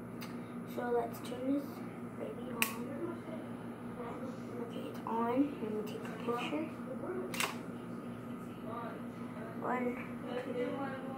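A young girl talks quietly close by.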